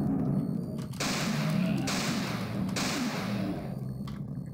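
A shotgun fires loud booming blasts.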